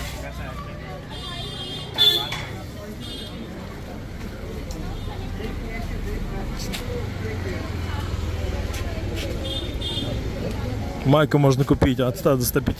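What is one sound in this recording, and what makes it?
A busy street crowd murmurs in the background outdoors.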